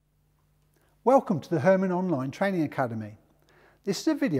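A middle-aged man speaks clearly and with animation, close to a microphone.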